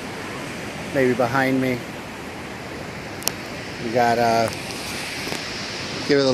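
Waves wash softly onto a beach.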